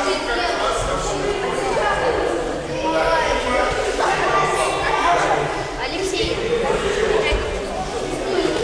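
A crowd of children chatters loudly in a large echoing hall.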